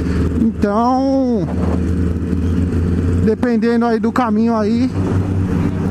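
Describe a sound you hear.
A motorcycle engine revs up and down in short bursts.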